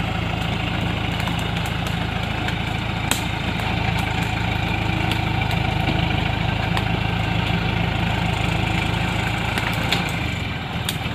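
A truck's diesel engine rumbles and strains close by.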